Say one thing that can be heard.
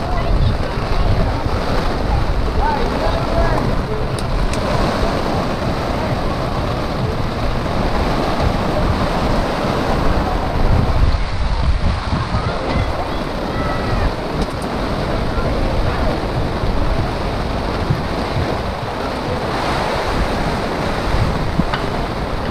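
Heavy rain pours and patters on a canopy overhead.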